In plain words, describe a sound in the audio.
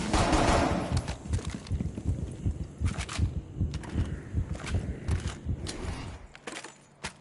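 Heavy footsteps thud quickly on wooden boards.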